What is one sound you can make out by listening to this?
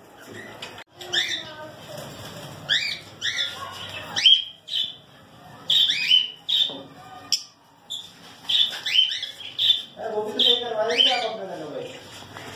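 Parrots chirp and squawk in short, sharp calls.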